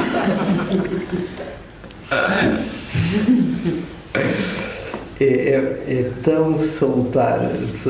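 A man speaks calmly and warmly, close by.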